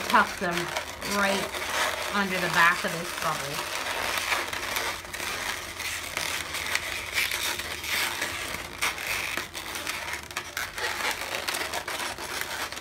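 Rubber balloons squeak and creak as they are twisted by hand.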